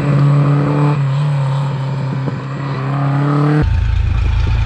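A rally car engine roars as the car speeds round a bend.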